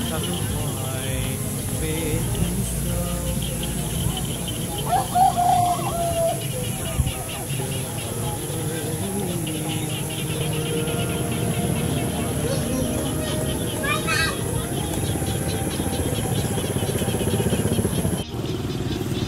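Chickens cluck softly close by.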